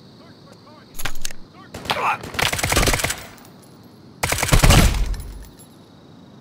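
Gunshots ring out loudly in bursts.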